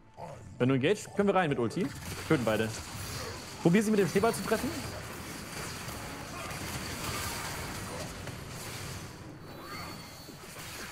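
Game sound effects of spells and fighting play steadily.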